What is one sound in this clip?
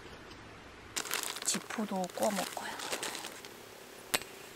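A plastic wrapper crinkles and rustles.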